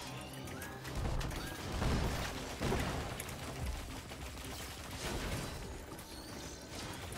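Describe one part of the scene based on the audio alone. Fiery explosions burst and crackle.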